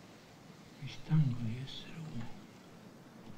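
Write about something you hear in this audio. A man murmurs quietly to himself, close by.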